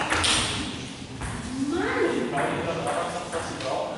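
A table tennis ball bounces on a table.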